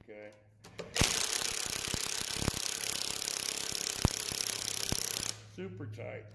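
A screwdriver whirs as it drives bolts into a steel block.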